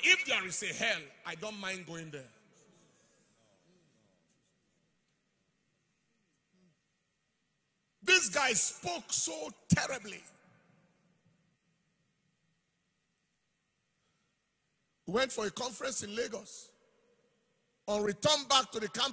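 A man speaks forcefully through a microphone in short bursts, with pauses between.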